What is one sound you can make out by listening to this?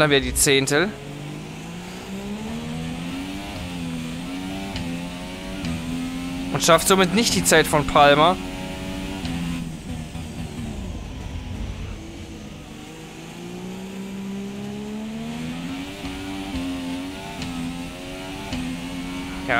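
A racing car engine roars and whines as it shifts through the gears.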